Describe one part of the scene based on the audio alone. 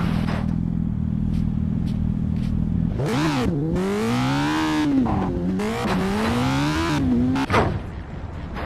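A motorcycle engine hums, then revs up and down loudly.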